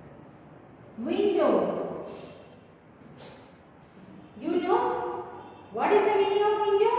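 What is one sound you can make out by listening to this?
A woman speaks clearly and slowly, close by.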